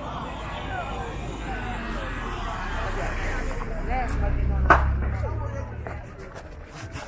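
A van engine rumbles close by.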